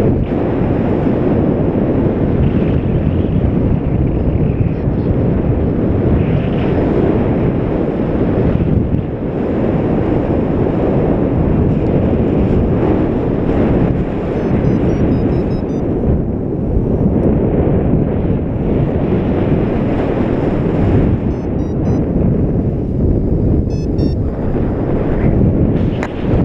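Strong wind rushes and buffets loudly outdoors.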